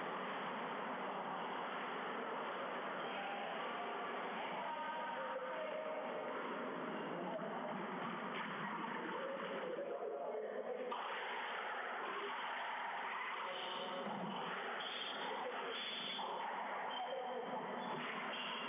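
Sneakers squeak sharply on a wooden court floor.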